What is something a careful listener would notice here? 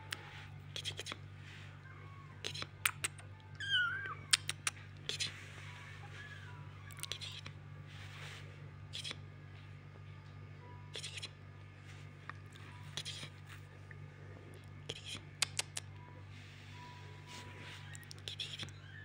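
Fabric rustles and crackles as a hand handles kittens.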